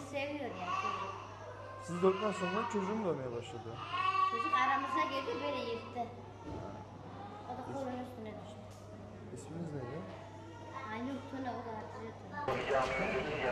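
A middle-aged woman speaks with agitation close by.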